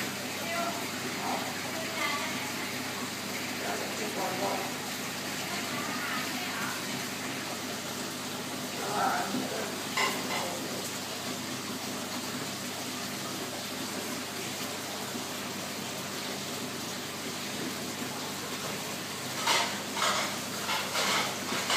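An aquarium filter hums underwater.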